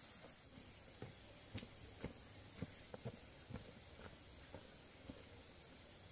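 Footsteps in rubber boots thud on a dry grassy slope.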